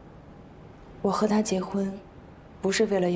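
A young woman answers quietly, close by.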